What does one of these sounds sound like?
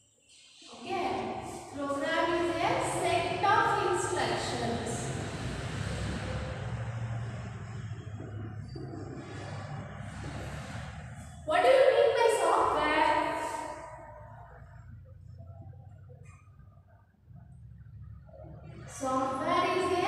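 A marker squeaks across a whiteboard.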